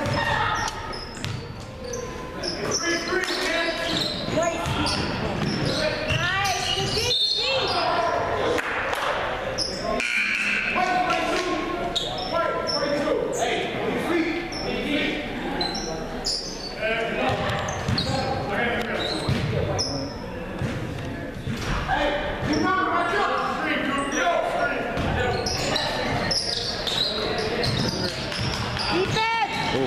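Spectators talk and call out in an echoing gym.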